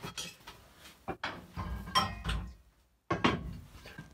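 A metal lid clanks against a cast-iron pot.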